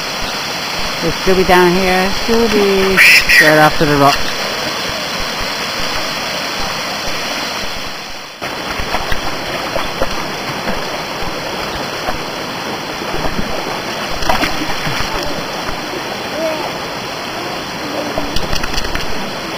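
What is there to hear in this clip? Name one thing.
A small child talks and calls out nearby.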